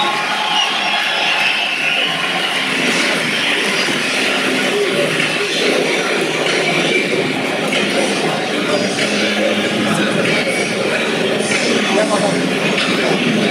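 A man announces through a loudspeaker.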